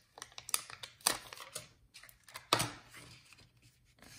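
Paper rustles and slides.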